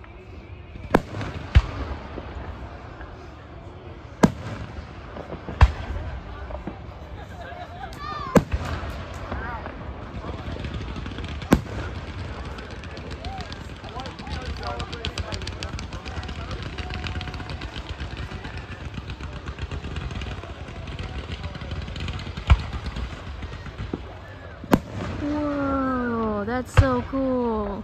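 Firework shells burst with sharp booms that echo outdoors.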